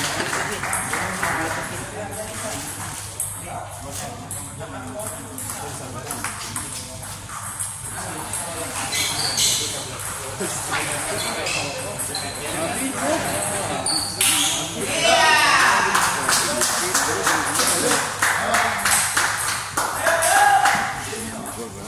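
Men talk and call out nearby in a large echoing hall.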